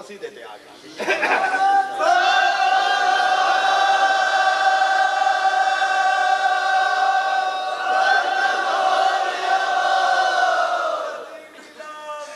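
A man sings a long drawn-out lament through a loudspeaker.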